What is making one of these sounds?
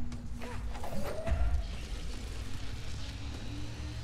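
Heavy blocks crash and thud loudly.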